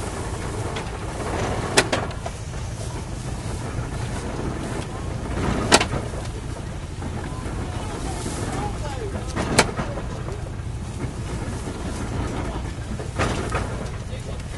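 A baling machine runs with a steady low rumble.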